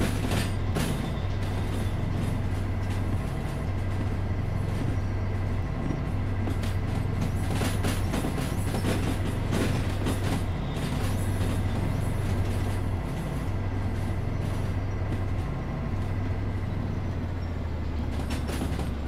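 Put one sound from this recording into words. A steam locomotive chugs steadily with a low rhythmic throb.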